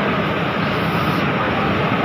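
A steam iron hisses as it presses cloth.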